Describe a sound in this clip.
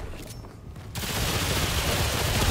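A gunshot fires.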